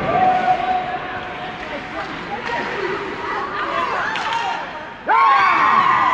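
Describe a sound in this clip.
A crowd of spectators talks and calls out in an echoing arena.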